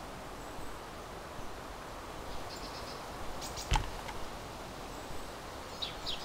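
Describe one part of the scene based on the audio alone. Footsteps thud on creaking wooden floorboards.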